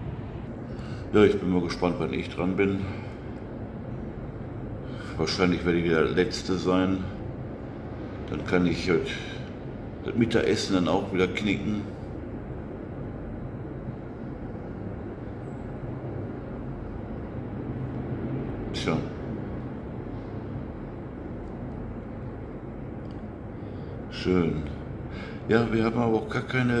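An elderly man speaks calmly close to a microphone, in short bursts with pauses.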